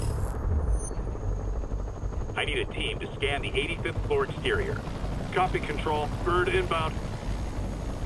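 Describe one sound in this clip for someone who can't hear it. Drones hum steadily as they hover nearby.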